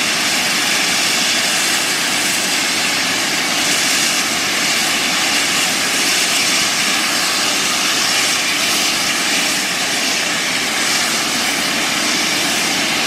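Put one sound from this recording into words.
A steam locomotive chuffs slowly as it pulls in.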